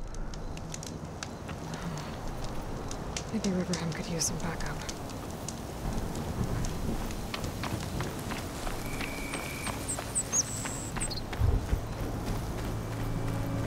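Footsteps crunch on dry dirt and gravel.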